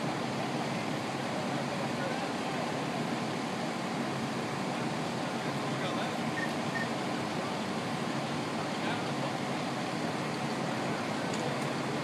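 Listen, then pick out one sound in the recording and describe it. Water hisses from a fire hose.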